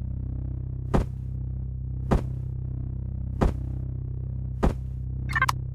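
Menu buttons click sharply several times.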